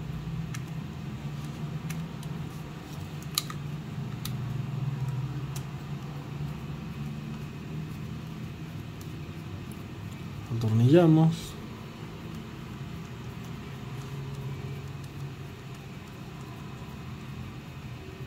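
A screwdriver clicks and scrapes against small metal screws.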